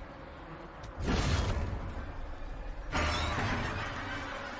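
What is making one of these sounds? A heavy weapon blow lands with a loud crunching impact.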